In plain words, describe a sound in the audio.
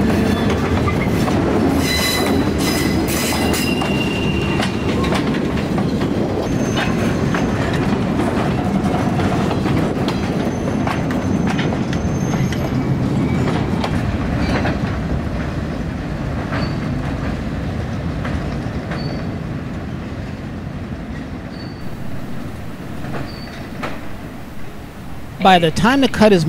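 A freight train rumbles and clanks slowly along the tracks.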